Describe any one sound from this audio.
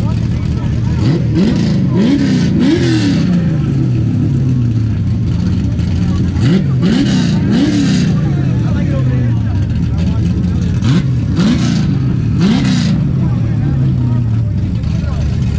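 A car engine revs up sharply in repeated bursts, then falls back.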